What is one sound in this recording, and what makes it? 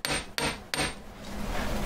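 A hammer taps sharply on metal.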